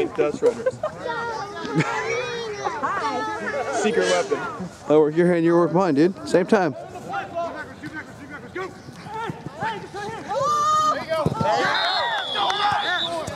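Several men shout and call out across an open field.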